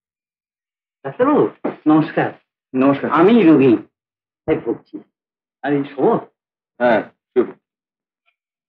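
A middle-aged man answers in a calm voice.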